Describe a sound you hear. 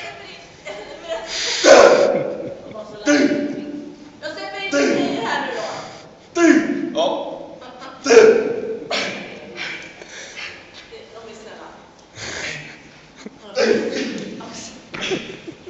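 A man speaks loudly with effort in an echoing room.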